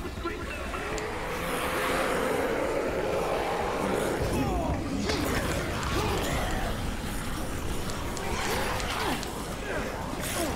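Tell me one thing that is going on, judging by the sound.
Zombies groan and moan in a crowd.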